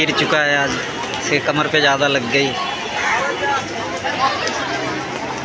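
A crowd of men and women talk and call out loudly nearby.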